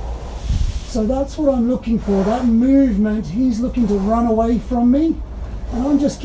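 A man talks calmly and softly, close by.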